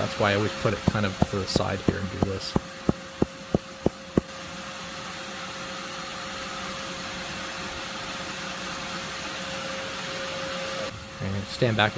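A vacuum hose sucks steadily at loose soil.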